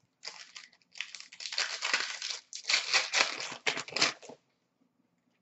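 A plastic wrapper crinkles and tears as hands rip it open.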